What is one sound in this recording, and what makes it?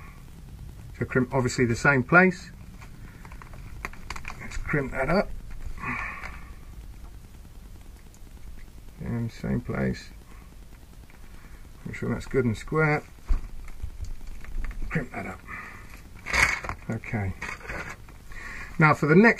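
A middle-aged man talks calmly and close up.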